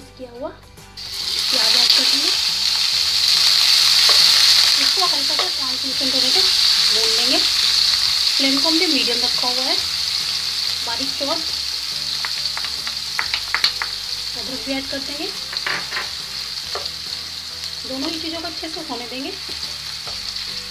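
Onions sizzle loudly in hot oil.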